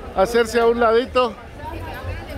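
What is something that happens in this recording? A woman speaks loudly close by.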